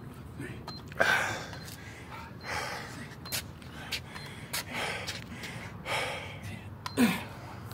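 A man breathes hard as he exerts himself.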